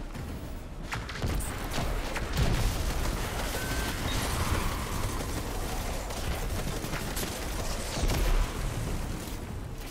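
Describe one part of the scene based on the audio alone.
Gunshots fire in quick bursts with booming blasts.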